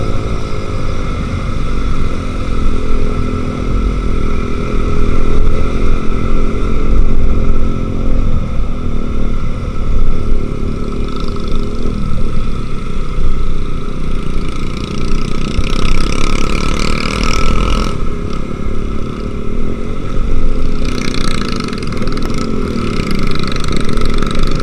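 A motorcycle engine hums steadily up close as it rides along.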